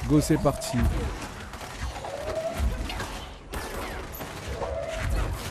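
Loud gunshots and blasts boom in quick bursts.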